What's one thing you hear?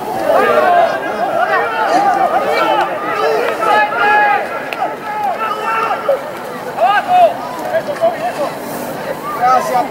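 Young men shout and call to each other on an open field outdoors.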